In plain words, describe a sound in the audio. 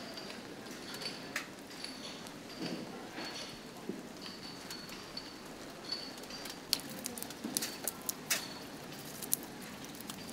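Water drips and patters in sharp drops close by.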